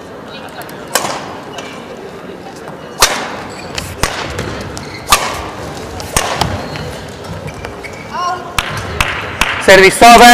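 A shuttlecock is struck sharply with a racket, back and forth.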